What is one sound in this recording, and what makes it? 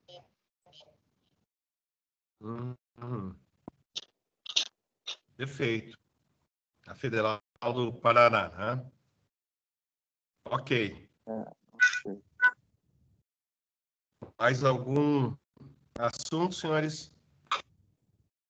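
An older man speaks steadily through an online call, with pauses.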